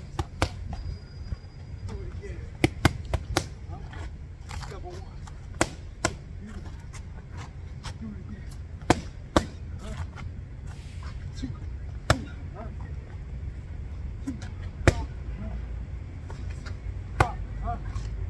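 Boxing gloves smack against focus mitts outdoors.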